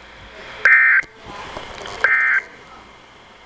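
A weather alert radio sounds loud, high electronic beeps.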